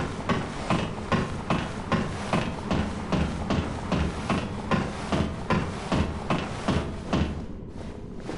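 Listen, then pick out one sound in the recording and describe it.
Footsteps clank steadily on metal ladder rungs.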